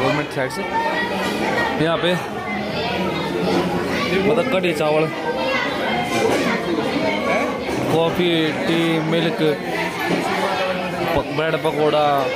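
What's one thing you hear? Many men and women chatter at once in a large echoing room.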